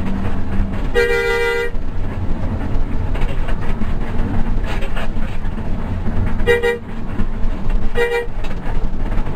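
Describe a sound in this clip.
A bus horn blasts loudly several times.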